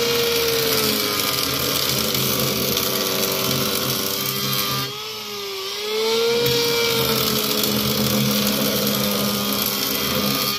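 An electric planer whines steadily as it shaves wood, dipping briefly in pitch.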